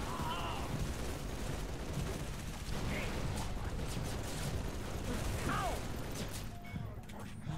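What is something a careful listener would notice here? Gunfire rattles in a game.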